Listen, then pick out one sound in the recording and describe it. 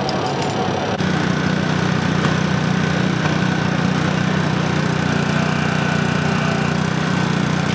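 A rescue tool's motor hums steadily and loudly.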